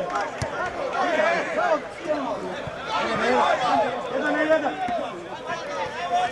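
Several men shout and call out across an open field.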